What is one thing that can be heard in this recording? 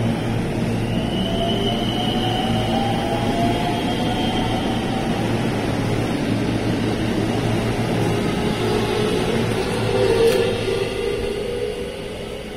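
An electric train motor whines, rising in pitch as the train speeds up.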